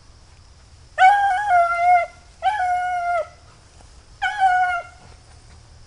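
A dog bays loudly in long, drawn-out howls.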